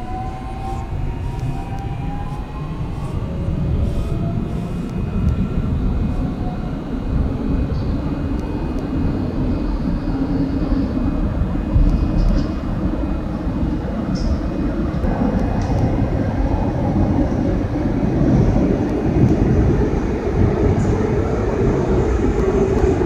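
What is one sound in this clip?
A subway train rumbles loudly through a tunnel.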